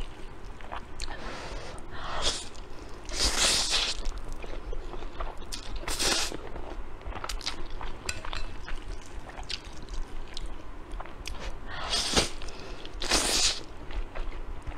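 A young woman slurps noodles loudly close to a microphone.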